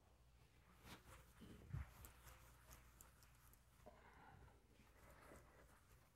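A board eraser rubs across a chalkboard.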